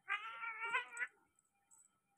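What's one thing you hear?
A cat yowls loudly and briefly.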